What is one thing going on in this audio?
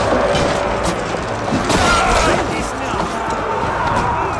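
Men shout and grunt as they fight.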